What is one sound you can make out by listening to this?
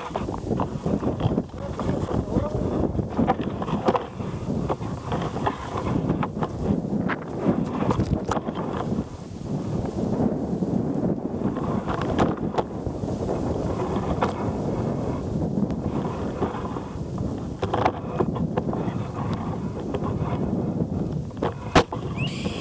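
Leaves and branches rustle and shake close by.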